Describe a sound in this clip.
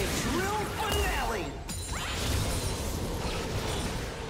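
Fiery magic blasts whoosh and crackle in a clash.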